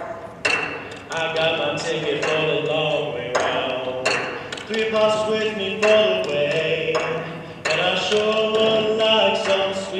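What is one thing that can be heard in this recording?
A group of young men sing together in an echoing hall.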